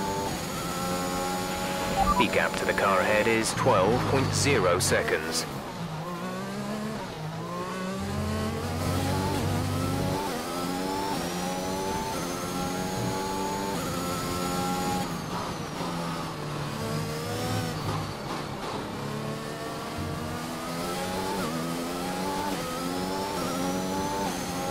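A racing car engine screams and shifts up and down through the gears.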